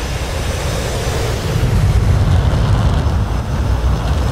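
A jet engine roars loudly as a fighter jet launches and speeds away.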